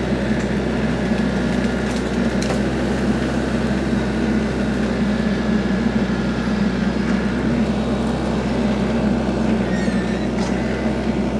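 A tractor diesel engine rumbles steadily close by.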